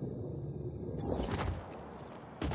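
Boots thud onto a metal roof in a landing.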